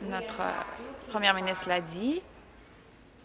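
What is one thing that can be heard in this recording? An elderly woman speaks with animation into a microphone.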